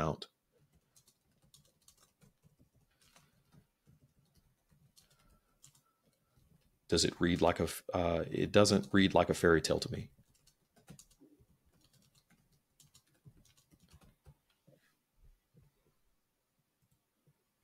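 Keys click softly on a keyboard.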